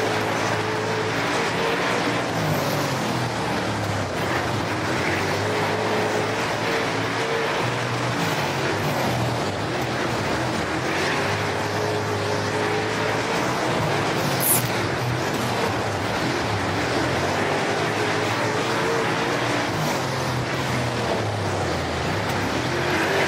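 A race car engine roars loudly, revving up and down.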